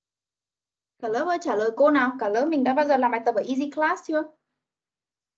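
A woman speaks clearly over an online call.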